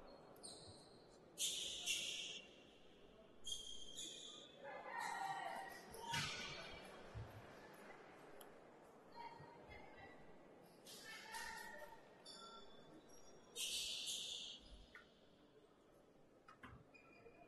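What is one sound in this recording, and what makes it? Spectators murmur and call out in the hall.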